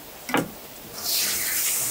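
Water runs from a tap.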